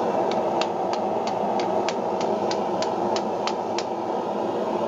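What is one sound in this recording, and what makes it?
A hammer strikes hot metal on an anvil in quick ringing blows.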